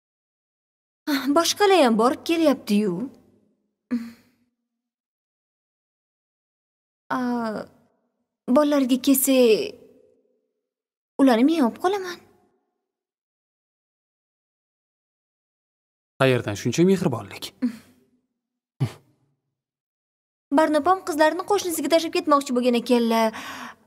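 A young woman speaks calmly and earnestly nearby.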